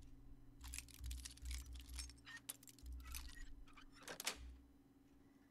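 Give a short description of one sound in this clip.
Metal lock picks scrape and click inside a lock.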